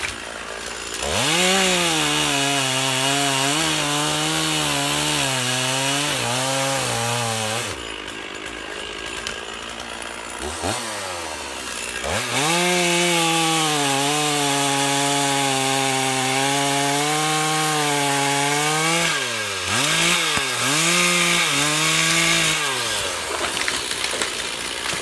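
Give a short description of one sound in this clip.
A chainsaw roars as it cuts through a log, its engine rising and falling.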